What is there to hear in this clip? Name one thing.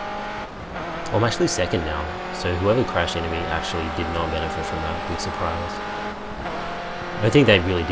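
Another racing car engine roars close by.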